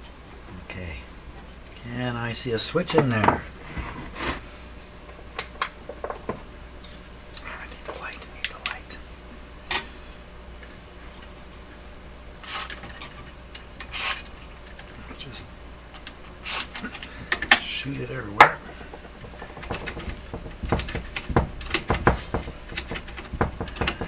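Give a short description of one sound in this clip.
Small metal parts click and rattle.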